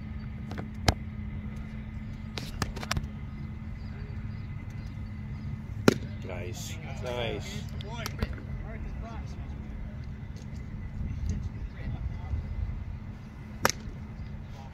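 A baseball smacks sharply into a catcher's mitt several times.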